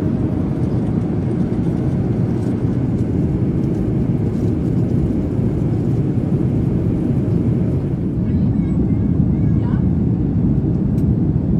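A jet engine roars steadily in a low, even drone.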